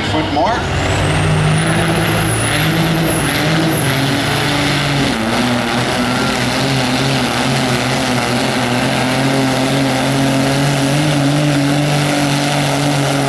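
A diesel pickup truck engine roars loudly under strain, its pitch rising and falling.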